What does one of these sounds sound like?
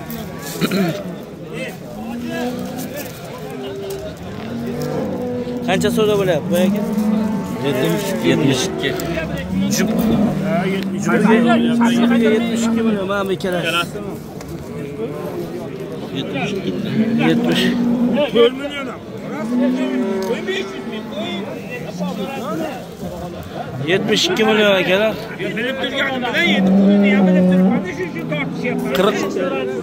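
Several men talk loudly over one another close by, outdoors.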